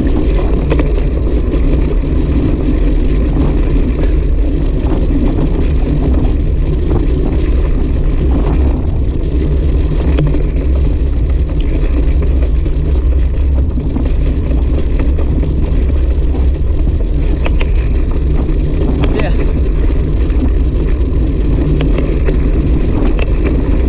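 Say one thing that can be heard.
A motorcycle engine hums while cruising.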